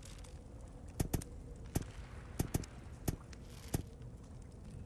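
Stone discs click and clunk as they turn into place.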